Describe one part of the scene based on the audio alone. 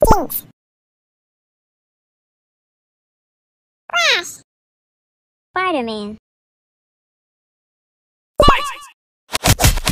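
Cartoon characters squeak with short gliding cries.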